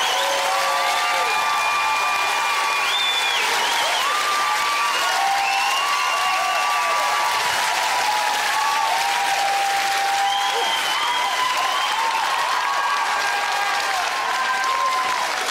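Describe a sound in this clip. A large crowd cheers and screams loudly in an echoing hall.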